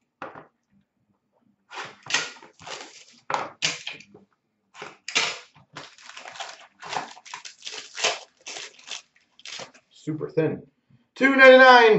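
Hands tear open a crinkling foil pack.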